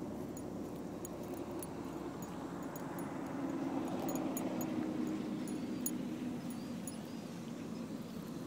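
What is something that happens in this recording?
A dog sniffs and crunches on grass close by.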